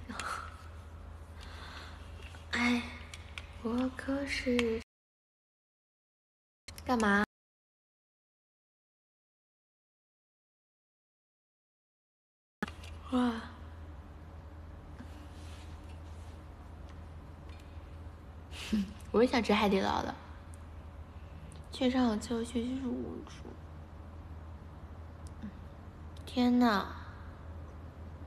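A young woman talks with animation close to a phone microphone.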